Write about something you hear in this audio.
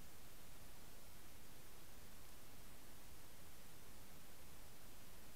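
A steady, muffled underwater hiss fills the recording.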